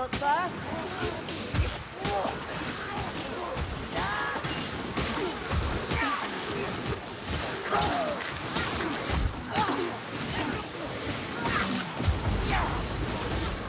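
Blows and impacts thud and crack repeatedly.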